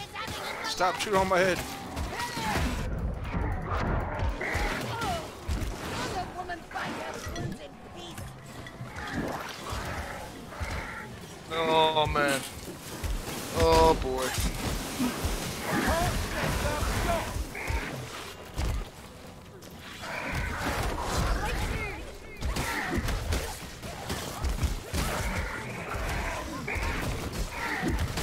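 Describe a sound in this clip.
A large monster growls and roars.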